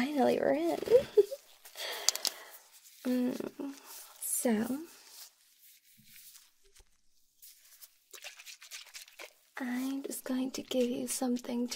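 A young woman speaks softly and playfully, close to the microphone.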